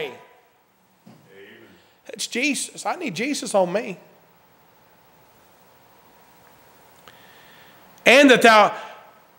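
A middle-aged man preaches forcefully into a microphone in an echoing hall, with long pauses.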